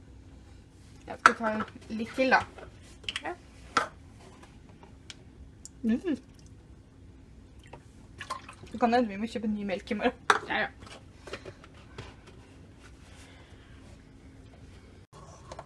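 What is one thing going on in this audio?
Milk bubbles gently as it simmers in a pot.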